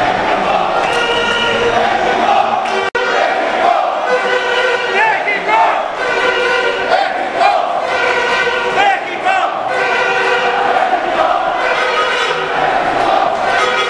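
A large crowd of men and women chant and sing loudly in unison, echoing.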